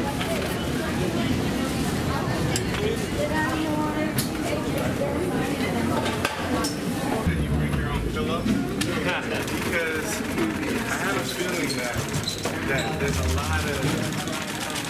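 Several men talk and call out close by.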